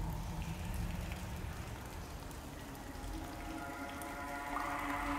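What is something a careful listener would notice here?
Rain patters steadily onto still water.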